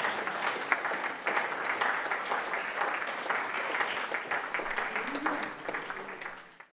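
An audience applauds loudly in an echoing hall, then the applause fades.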